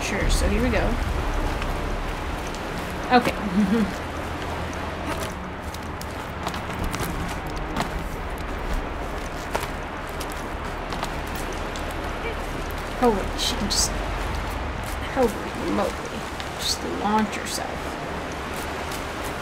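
Water rushes steadily nearby.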